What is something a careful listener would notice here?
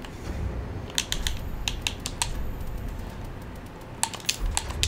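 Menu clicks tick sharply in quick succession.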